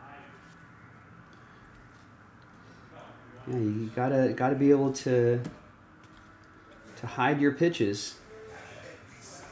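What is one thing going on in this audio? Trading cards slide and rustle against each other in a man's hands.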